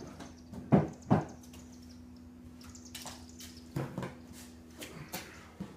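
A hollow plastic boat knocks and thumps as it is moved.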